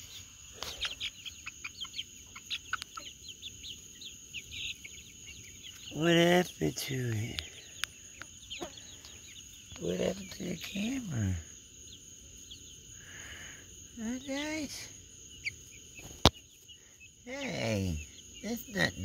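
Young birds cheep and peep rapidly close by.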